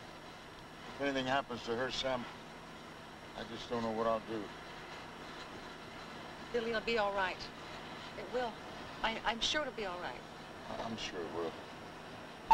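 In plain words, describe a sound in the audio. A young woman speaks tensely and quietly nearby.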